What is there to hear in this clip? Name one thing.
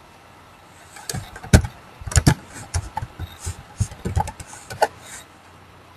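Computer keys clack quickly as someone types.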